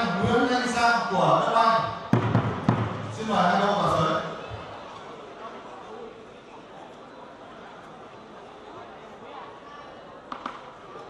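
A large outdoor crowd murmurs.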